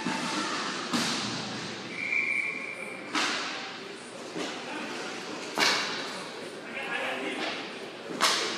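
Hockey sticks clack against a ball and the floor.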